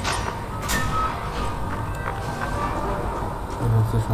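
A heavy iron gate creaks open.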